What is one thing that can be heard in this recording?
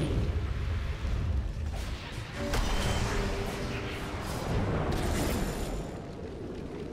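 Magic blasts and clashing blows crackle and boom in a hectic fight.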